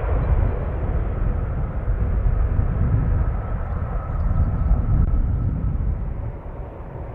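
A jet airliner's engines roar loudly as it rolls along a runway.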